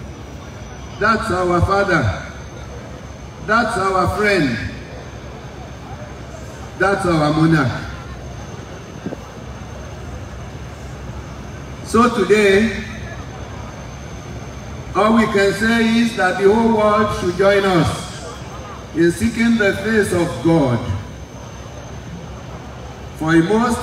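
An elderly man speaks in short bursts through a microphone and loudspeakers.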